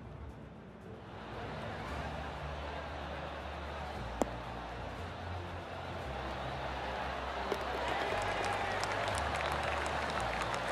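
A crowd claps and cheers outdoors, growing louder.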